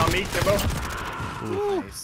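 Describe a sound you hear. Gunfire rattles in a rapid burst.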